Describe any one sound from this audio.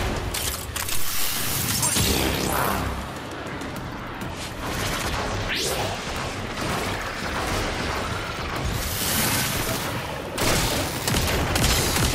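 Blades whoosh and slash in rapid, repeated strikes.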